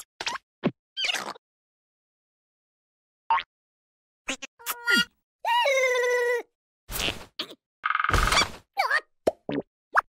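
A cartoon creature squeaks and babbles in a high, squeaky voice.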